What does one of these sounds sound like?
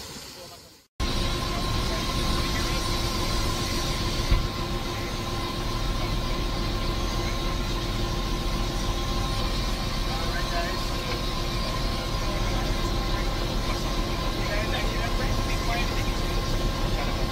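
A middle-aged man talks calmly through a headset microphone over the engine noise.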